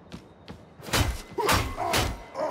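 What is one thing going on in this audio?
A blade slashes and squelches into flesh.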